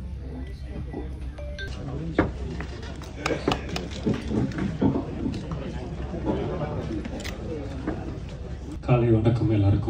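A crowd chatters and murmurs.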